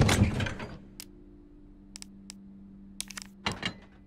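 Short menu clicks tick several times.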